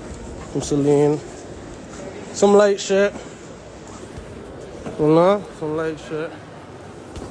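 A young man speaks in short loud bursts close to a phone microphone.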